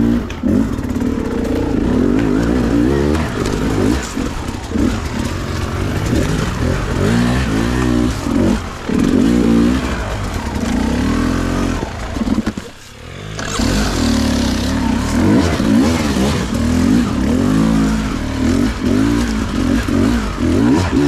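Tyres crunch over dry leaves and twigs.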